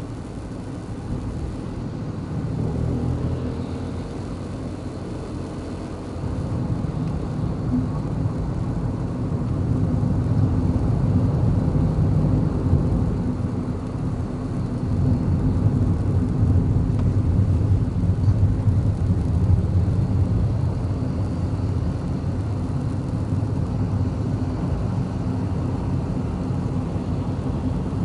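Tyres roll and rumble on the road.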